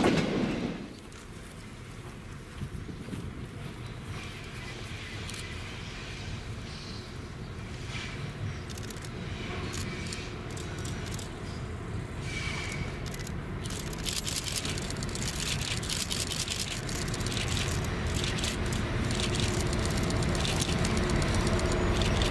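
A diesel-electric locomotive rumbles as it draws closer.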